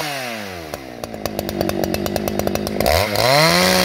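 A chainsaw engine idles with a rapid chugging.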